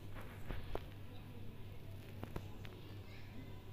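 A metal spoon scrapes and clinks against a metal pot while stirring.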